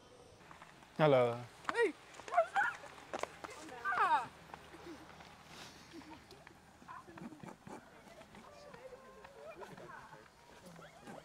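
Young women talk and laugh close by.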